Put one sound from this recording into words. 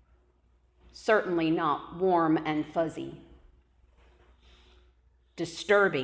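A middle-aged woman speaks calmly into a microphone in an echoing hall.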